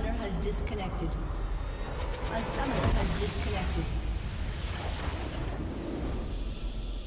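Magic spell effects crackle and burst rapidly in a fight.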